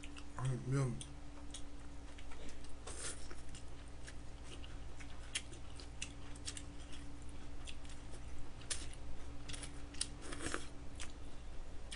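A young woman slurps noodles loudly close to a microphone.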